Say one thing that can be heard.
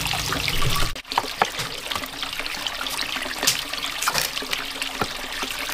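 Vegetable pieces drop into a basin of water with soft splashes.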